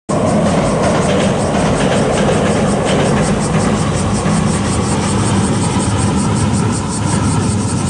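A train rumbles across a steel bridge in the distance.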